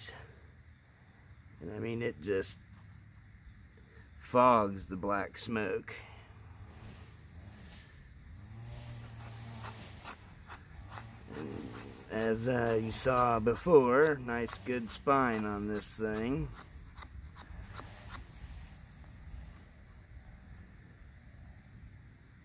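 A knife blade scrapes and shaves thin curls from a stick of wood.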